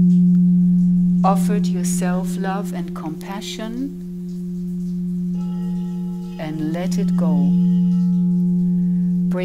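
Crystal singing bowls ring with a steady, sustained hum.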